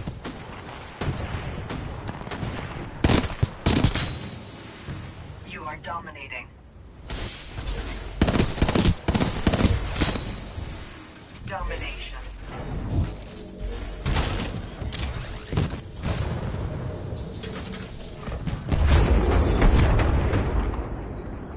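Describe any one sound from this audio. Game gunfire rattles in short bursts.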